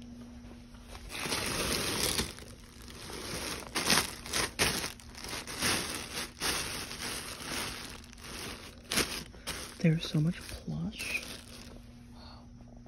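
Plastic bags rustle and crinkle as hands rummage through them.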